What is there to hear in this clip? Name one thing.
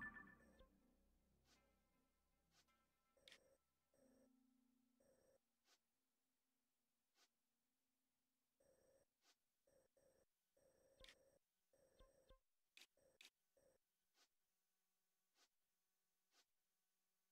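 Soft electronic blips sound as a menu cursor moves across a map.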